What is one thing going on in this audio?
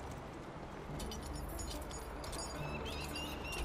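A metal chain rattles and clinks.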